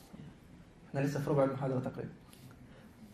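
A young man laughs into a microphone.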